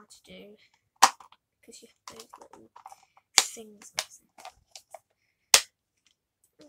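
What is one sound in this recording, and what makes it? A plastic object clicks and taps in a young woman's hands.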